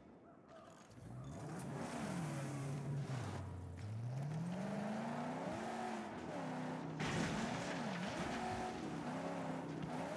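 A car engine revs, rising and falling in pitch.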